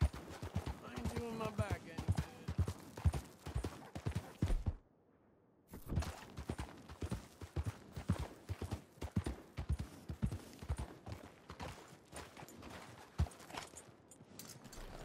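A horse's hooves clop quickly on a dirt road.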